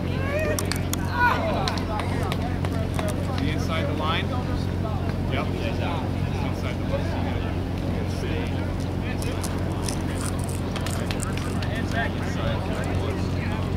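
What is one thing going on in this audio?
Young men call out to each other across an open field in the distance.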